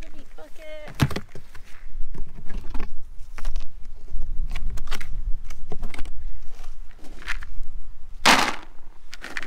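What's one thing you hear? Plastic bucket lids knock and snap as they are pried off.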